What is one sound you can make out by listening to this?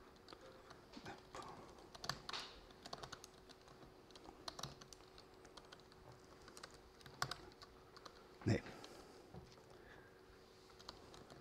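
A man types on a laptop keyboard.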